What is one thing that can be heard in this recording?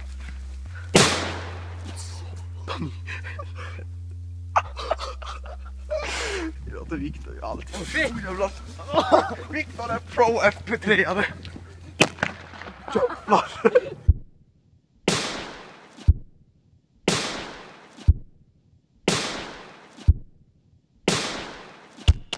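A firecracker explodes with a sharp bang.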